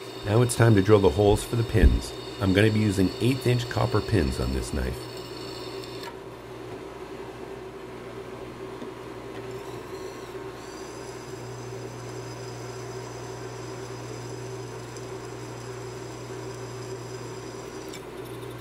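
A drill bit grinds into metal.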